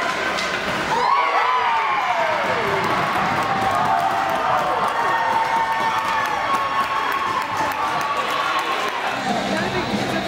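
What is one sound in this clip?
A crowd of spectators cheers and shouts loudly in an echoing arena.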